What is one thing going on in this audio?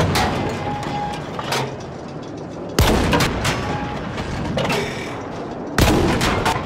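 Loud gunshots boom and echo.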